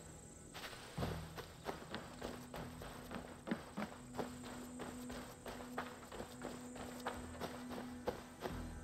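Footsteps tread on grass and dirt.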